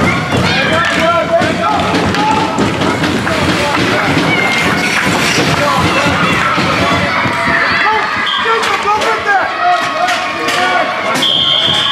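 Young children shout and call out in a large echoing rink.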